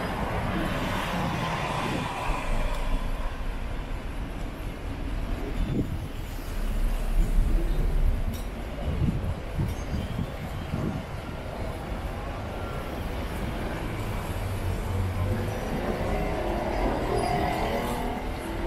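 Car tyres hiss on a wet road.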